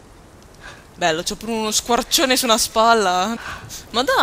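A young woman calls out loudly in a wavering voice.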